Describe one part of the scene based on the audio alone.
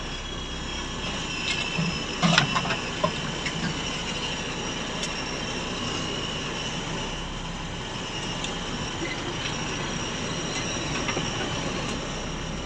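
Branches and leaves scrape and brush against the vehicle.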